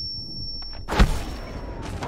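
A loud explosion bangs close by.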